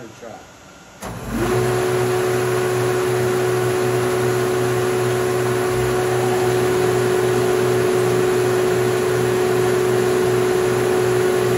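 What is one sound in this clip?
A large workshop machine switches on and runs with a steady, loud drone.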